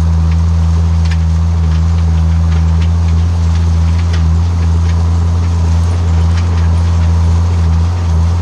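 A seed drill rattles and clanks as it is pulled over a field.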